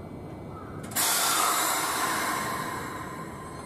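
A train's wheels hiss and screech on the rails.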